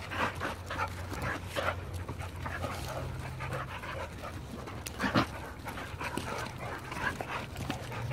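Dogs scuffle and scamper across dirt close by.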